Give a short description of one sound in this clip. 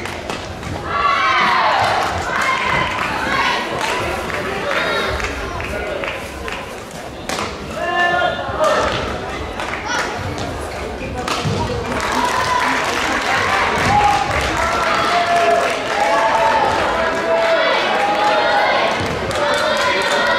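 Sneakers squeak sharply on a hard indoor court.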